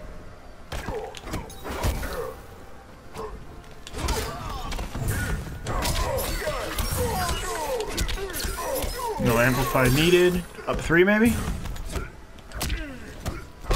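Punches and kicks land with heavy thuds.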